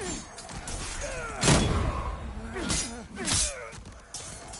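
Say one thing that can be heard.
A sword slashes and strikes an enemy with heavy impacts.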